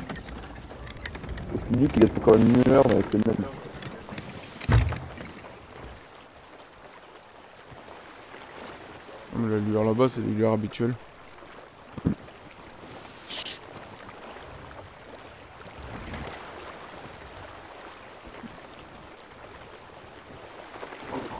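Waves wash against a wooden ship's hull.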